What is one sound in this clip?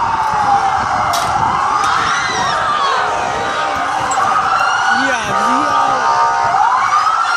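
Teenagers shout and yell excitedly nearby, outdoors.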